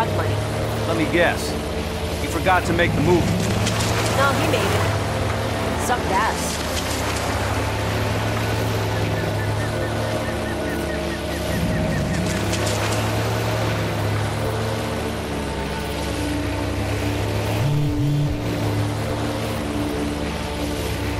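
A boat's outboard motor drones steadily.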